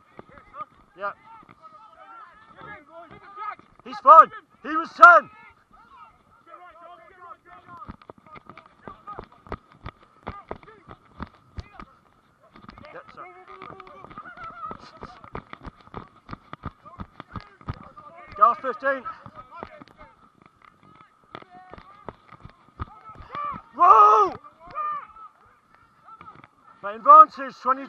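Men shout to each other outdoors.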